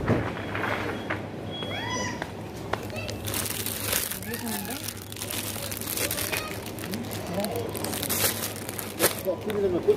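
A shopping cart rattles as it rolls over a hard floor.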